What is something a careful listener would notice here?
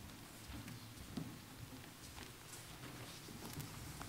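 Footsteps shuffle softly across a floor.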